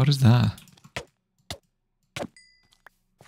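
Sword blows land on a creature with short, dull thuds.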